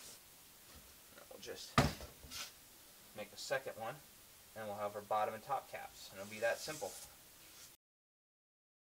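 A knife scrapes and cuts through cardboard.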